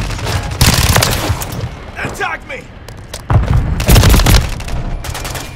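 Gunfire bursts loudly in rapid shots.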